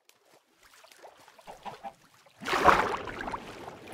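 Water splashes and sloshes.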